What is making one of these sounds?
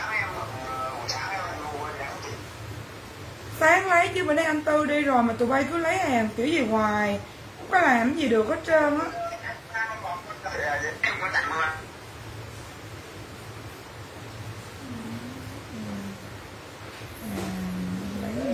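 A young woman talks close by with animation, speaking into a phone.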